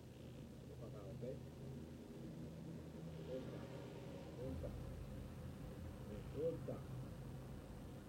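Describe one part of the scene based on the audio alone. A man speaks just outside a car window, close by.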